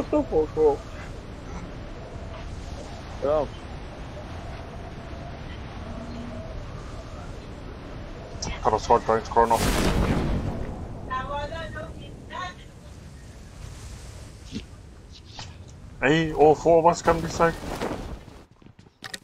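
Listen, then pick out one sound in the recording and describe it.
A man talks into a microphone with animation, close by.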